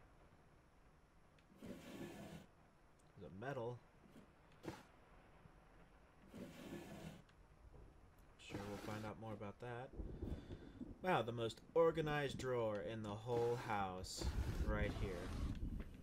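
Wooden drawers slide open and shut.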